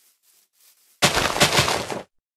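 Leaves rustle and crunch loudly as a leafy block is broken.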